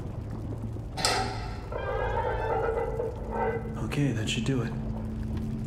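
A metal valve wheel squeaks and creaks as it turns.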